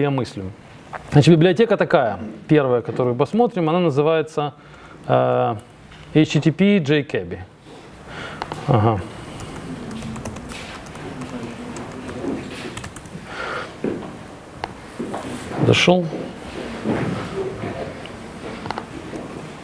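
Keys clatter on a laptop keyboard.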